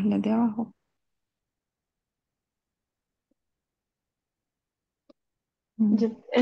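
A woman speaks over an online call in short bursts, with silence in between.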